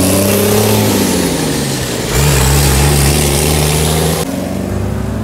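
A military truck's engine rumbles loudly as it drives past.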